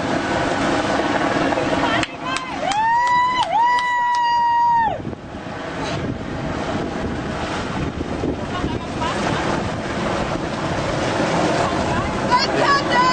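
Strong wind blows outdoors, buffeting loudly.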